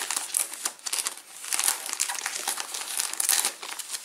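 Scissors snip through a plastic wrapper.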